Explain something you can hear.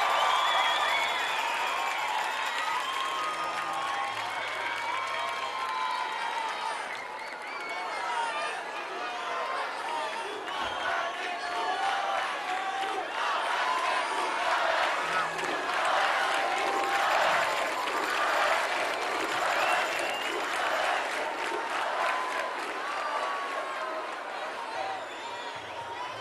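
Fans in a crowd whistle shrilly.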